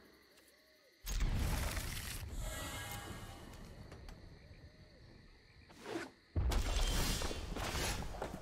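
Soft digital whooshes and chimes swell in bursts.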